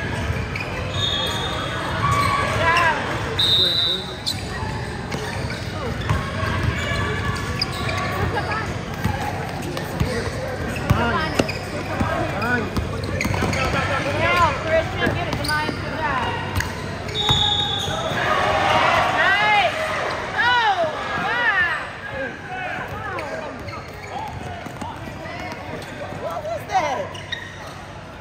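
Spectators murmur and chatter in the background.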